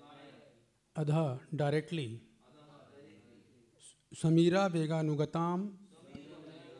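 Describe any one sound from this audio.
A man chants melodically into a microphone, close and clear.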